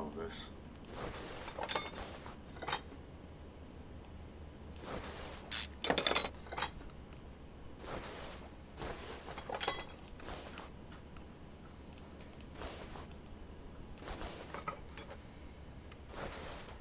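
Metal car parts clank as they are taken off.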